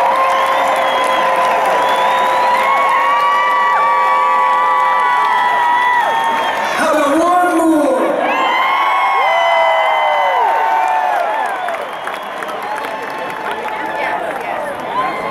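An electric guitar plays through loudspeakers.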